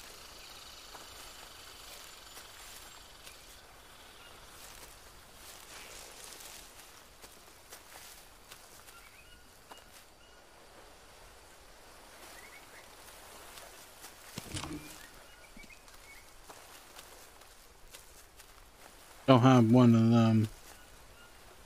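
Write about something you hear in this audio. Leaves rustle as someone pushes through dense plants.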